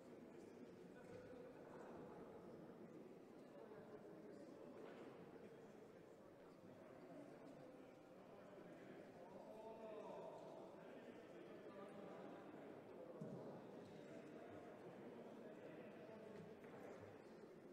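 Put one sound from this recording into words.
Many voices murmur in a large room.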